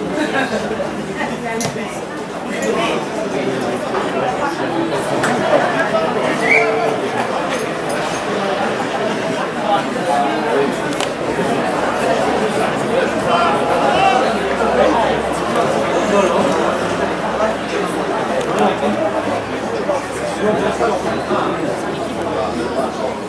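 Men shout and call to each other across an open outdoor field.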